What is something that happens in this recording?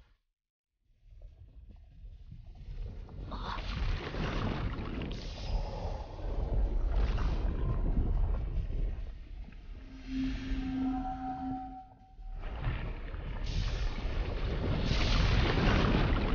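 A deep, rumbling roar builds and booms as a huge rock crashes down.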